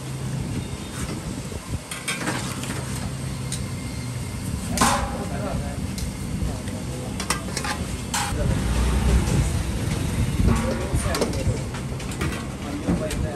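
Oil sizzles and bubbles steadily in a frying pan.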